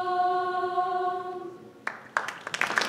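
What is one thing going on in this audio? A women's choir sings in a large hall.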